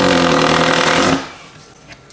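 A power drill whirs.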